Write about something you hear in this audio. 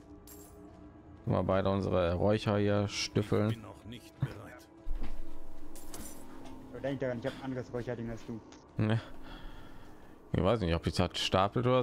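Weapons clash and thud in a fight.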